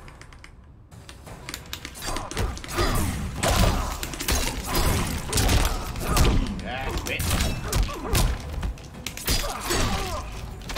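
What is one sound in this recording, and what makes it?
Punches and kicks land with heavy thuds and sharp cracks.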